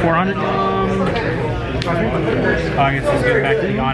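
Cards are shuffled by hand.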